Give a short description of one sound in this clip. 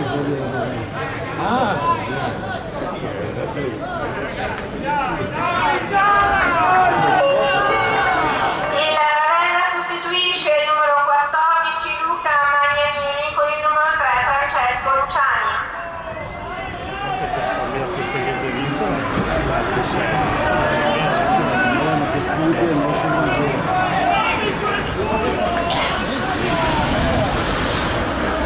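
A crowd of spectators shouts and chatters outdoors.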